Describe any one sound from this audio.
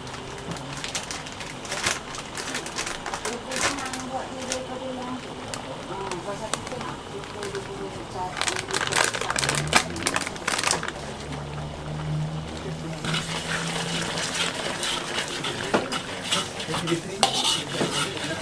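A metal spatula scrapes and stirs in a wok.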